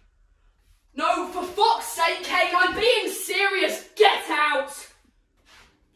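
A woman talks loudly with animation.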